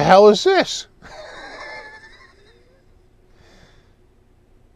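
A man laughs softly.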